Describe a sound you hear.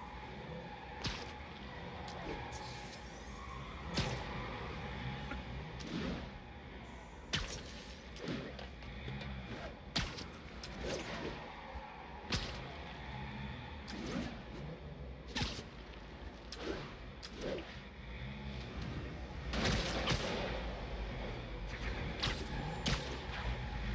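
Web lines shoot out again and again with sharp snapping thwips.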